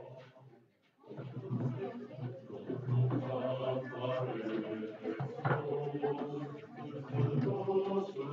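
A group of people chatter loudly in a room, heard through an online call.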